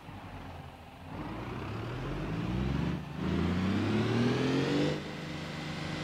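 A heavy engine revs up, rising in pitch.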